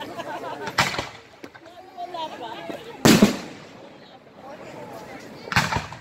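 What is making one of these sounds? Fireworks explode with loud booming bangs outdoors.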